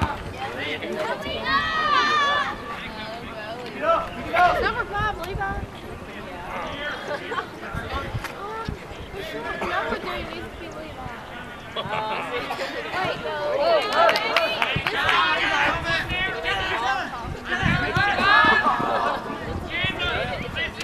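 Young men shout and call out to each other across an open field outdoors.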